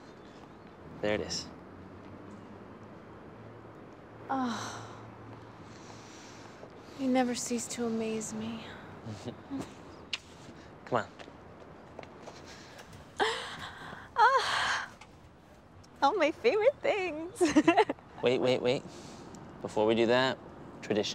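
A young man talks calmly and warmly nearby.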